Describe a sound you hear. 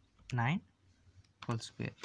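Calculator buttons click softly as a finger presses them.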